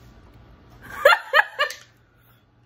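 A young woman cries out with a strained laugh close by.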